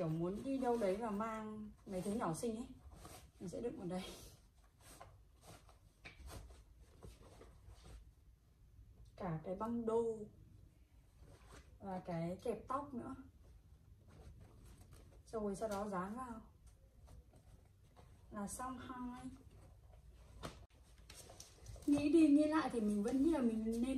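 Fabric rustles as a bag is handled.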